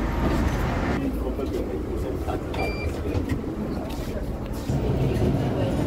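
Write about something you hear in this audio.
A bus engine hums and rumbles.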